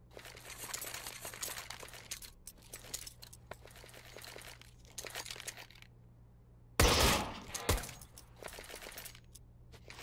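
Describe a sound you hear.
Footsteps patter on hard ground.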